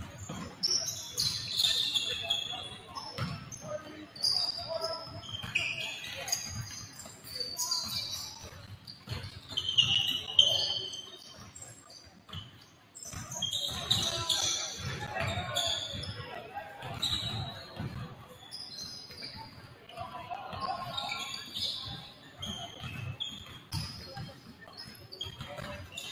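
Young people chatter and call out across the gym.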